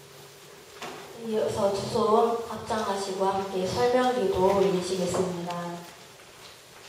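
A young woman speaks calmly through a microphone in an echoing room.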